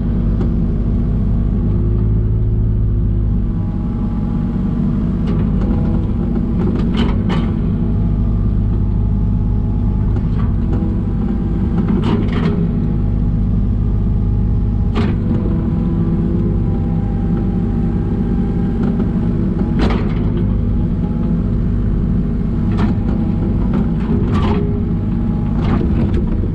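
A diesel engine rumbles steadily and loudly close by.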